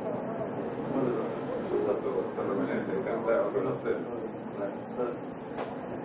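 Several men talk and greet each other with animation.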